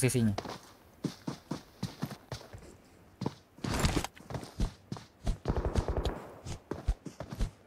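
Footsteps tread steadily on grass and wooden floors.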